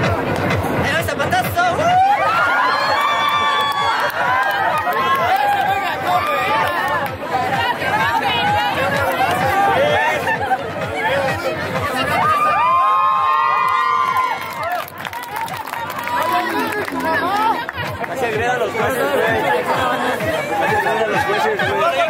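Dance music with a heavy, fast beat plays loudly over loudspeakers outdoors.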